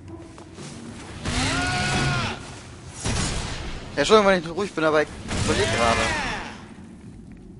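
A burst of flame roars up in loud whooshes.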